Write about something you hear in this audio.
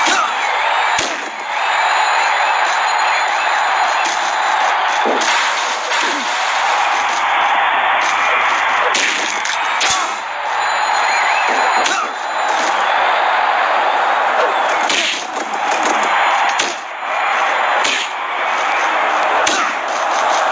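Heavy thuds of bodies and blows land now and then.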